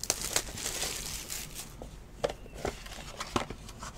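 A foil pack tears open.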